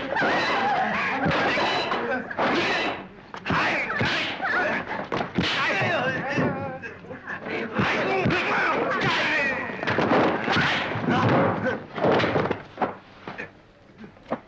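Punches thud and slap in a fistfight.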